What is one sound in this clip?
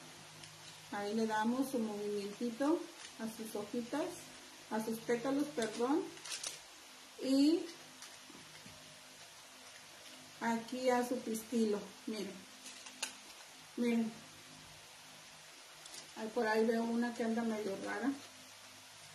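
A middle-aged woman speaks calmly and close by, explaining.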